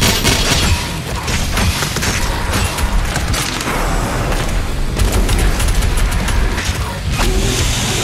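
A heavy gun fires in rapid bursts.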